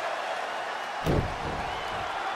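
A foot stomps heavily onto a wrestling mat.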